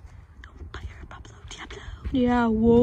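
Hooves thud softly on dirt.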